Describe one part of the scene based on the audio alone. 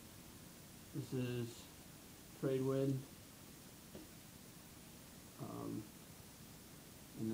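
A young man sings short notes close to a microphone.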